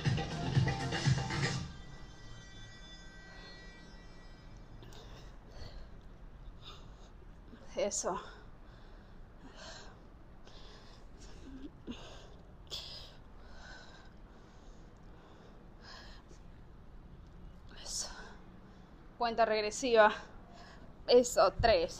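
A woman exhales sharply as she exercises.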